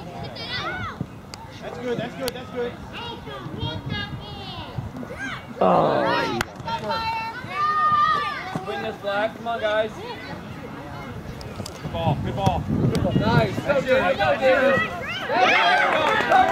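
Adult spectators shout and cheer loudly from the sidelines outdoors.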